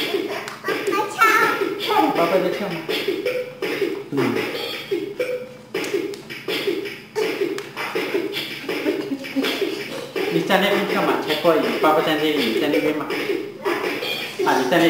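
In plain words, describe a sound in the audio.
A toddler girl giggles and squeals nearby.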